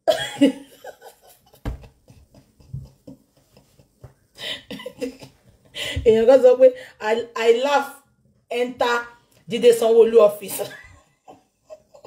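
A woman laughs loudly close to a microphone.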